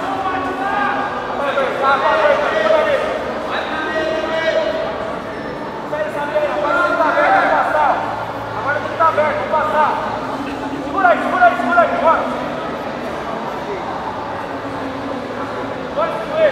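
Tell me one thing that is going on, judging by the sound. Men in a nearby crowd shout and call out.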